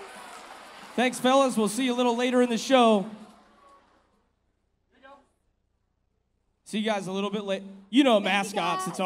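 A man speaks loudly with animation through a loudspeaker in a large echoing hall.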